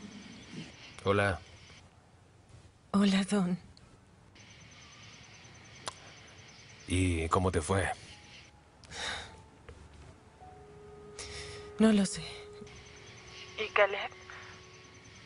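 A man speaks calmly into a phone.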